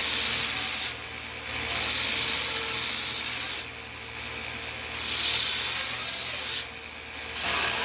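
A belt sander grinds loudly against wood in repeated passes.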